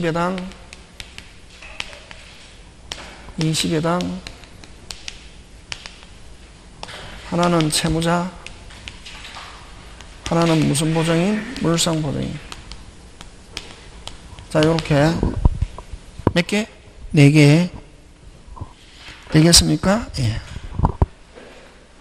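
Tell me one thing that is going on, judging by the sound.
A middle-aged man speaks through a microphone in short phrases, heard over a loudspeaker in a room.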